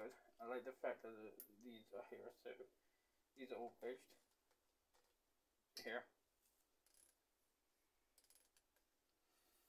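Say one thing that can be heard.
A metal hilt clicks softly as hands twist it.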